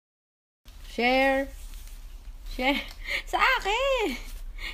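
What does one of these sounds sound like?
A baby coos and babbles close by.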